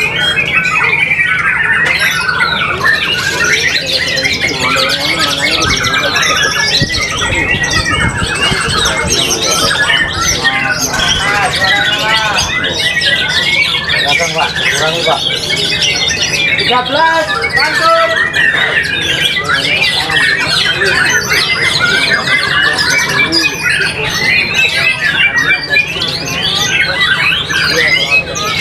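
A caged songbird sings loud, varied whistling phrases without pause.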